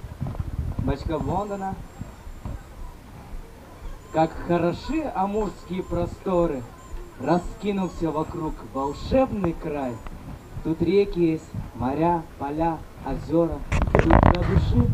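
A man sings loudly through a microphone and loudspeakers, outdoors.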